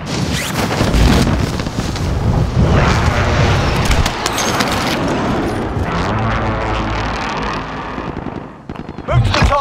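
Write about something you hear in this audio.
Wind rushes loudly past during a fast fall through the air.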